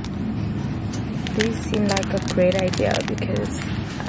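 A plastic bag crinkles in a hand.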